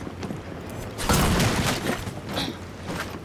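Wooden boards smash and splinter.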